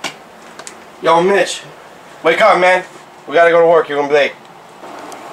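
A man nearby speaks in short, excited bursts.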